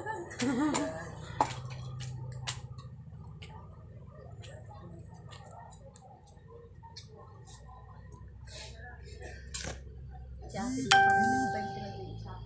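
A spoon scrapes and clinks in a cup.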